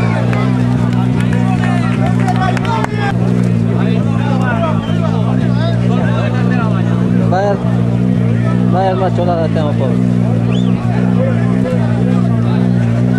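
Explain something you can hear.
A large crowd shouts and cheers excitedly outdoors.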